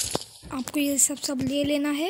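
Footsteps patter quickly.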